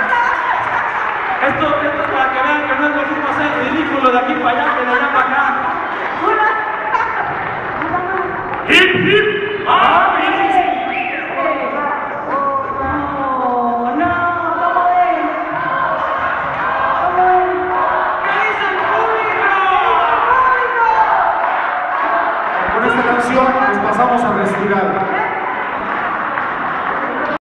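A choir sings together in a large echoing hall.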